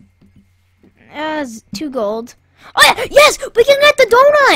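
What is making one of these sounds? A boy talks loudly and with excitement close to a microphone.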